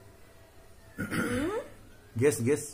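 A young woman speaks and laughs close by.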